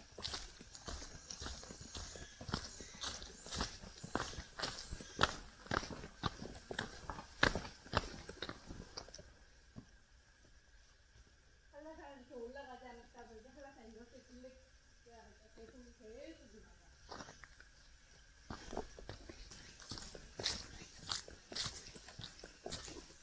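Footsteps crunch and scuff on rocky ground close by.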